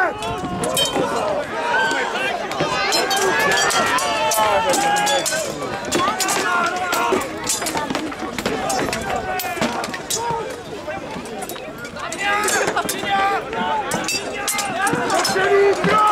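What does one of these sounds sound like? Wooden shields and weapons clatter and knock together.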